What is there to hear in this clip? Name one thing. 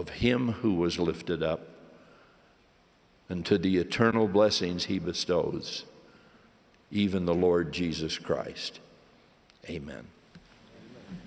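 An elderly man speaks slowly and solemnly into a microphone in a large echoing hall.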